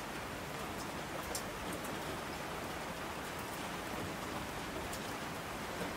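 Water rushes down in torrents.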